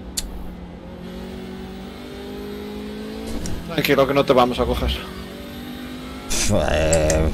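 A racing car engine hums and slowly rises in pitch.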